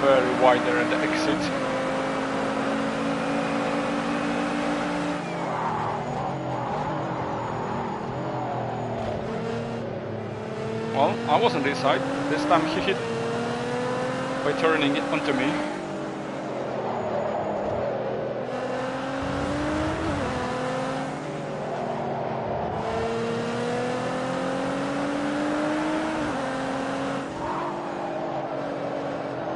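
A racing car engine roars, rising and falling in pitch as the car speeds up and brakes.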